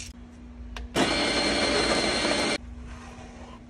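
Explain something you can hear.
A coffee grinder whirs loudly as it grinds beans.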